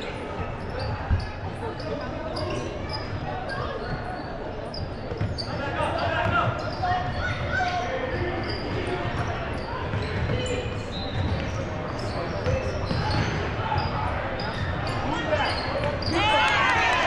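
A crowd chatters and calls out.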